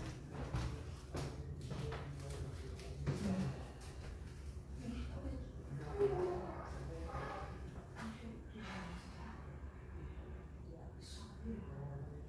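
A trumpet plays soft, breathy notes.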